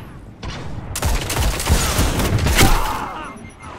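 A rifle fires a loud shot.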